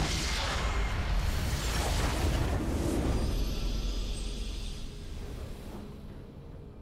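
A huge blast booms and rumbles, then slowly fades away.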